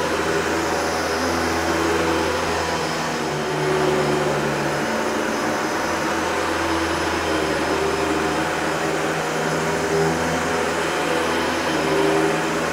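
Debris rattles as a vacuum cleaner sucks it up from a carpet.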